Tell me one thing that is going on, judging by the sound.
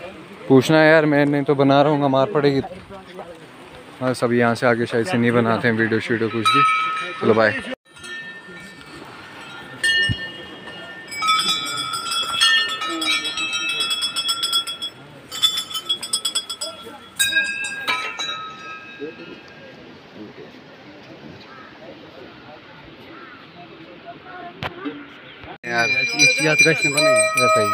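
A crowd of men murmur outdoors.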